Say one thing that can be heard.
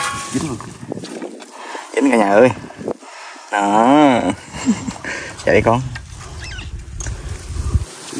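A blade scrapes and digs into dry soil.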